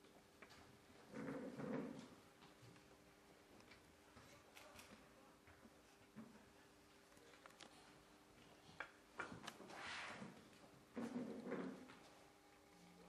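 A chair scrapes across a wooden floor.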